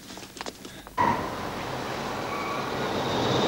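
A car engine hums as the car drives closer.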